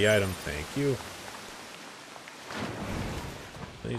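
Water splashes and rushes nearby.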